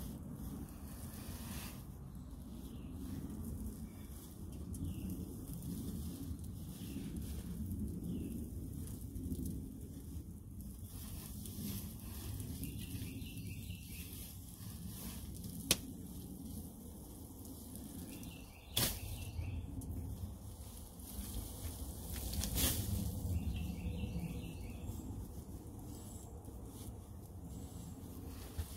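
Straw rustles and crunches as hands stuff it into a wall.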